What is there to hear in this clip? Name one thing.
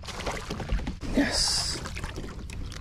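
A landing net swishes into the water.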